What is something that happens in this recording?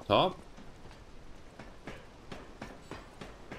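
Boots clank on the rungs of a metal ladder.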